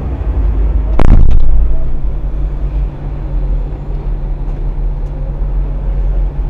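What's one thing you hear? A truck rolls past close by.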